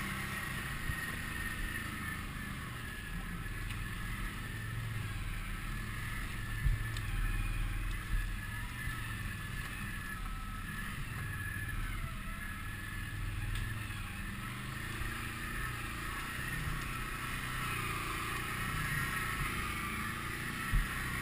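A motorbike's frame rattles and knocks over bumps.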